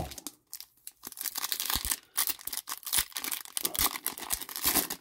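A plastic wrapper crinkles as hands handle it.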